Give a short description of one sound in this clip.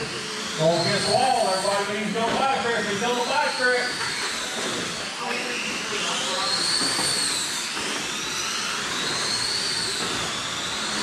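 Small electric motors whine, rising and falling in pitch as radio-controlled cars race by.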